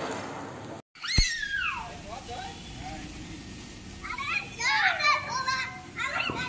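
Small fireworks whistle and screech as they spin.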